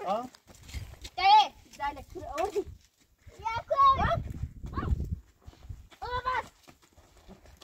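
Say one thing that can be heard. Children shout and laugh excitedly nearby.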